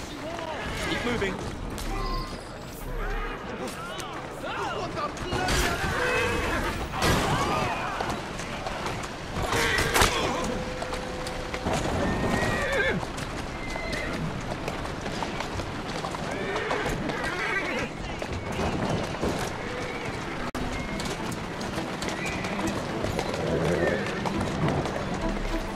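Horse hooves clatter on cobblestones.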